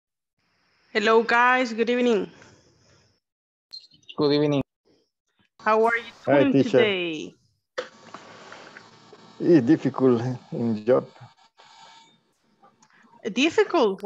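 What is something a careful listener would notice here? A woman speaks calmly through an online call with a headset microphone.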